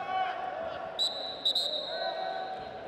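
A referee blows a whistle in short sharp blasts.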